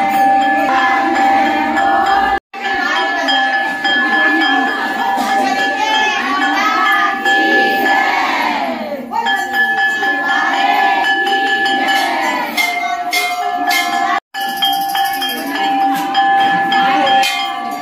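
A crowd of women sing and chatter loudly close by.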